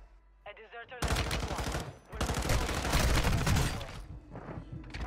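Rapid gunshots fire in loud bursts.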